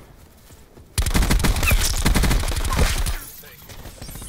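Rapid gunfire rattles loudly in a close burst.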